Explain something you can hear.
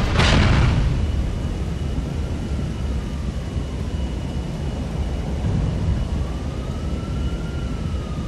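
Flames roar and crackle on a burning plane wreck.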